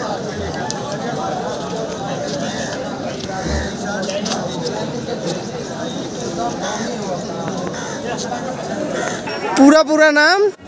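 A crowd murmurs and chatters in the background outdoors.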